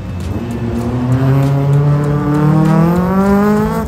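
Tyres squeal on tarmac as a car drifts.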